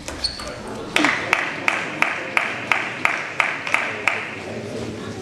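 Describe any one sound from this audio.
A crowd claps in a large echoing hall.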